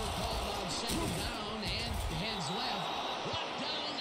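Football players collide with thudding impacts during a tackle.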